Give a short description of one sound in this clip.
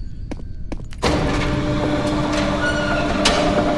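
A heavy metal door slides open with a loud rumble.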